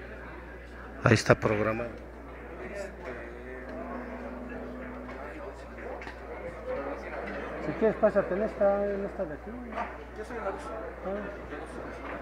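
Men talk nearby in a hall with a little echo.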